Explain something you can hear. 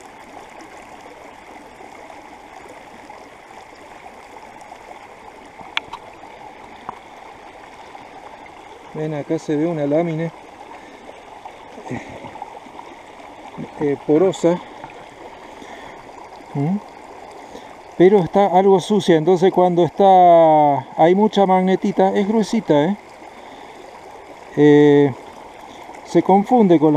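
A shallow stream trickles softly nearby.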